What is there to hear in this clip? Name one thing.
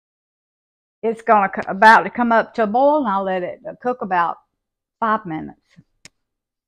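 An elderly woman talks calmly into a clip-on microphone, close by.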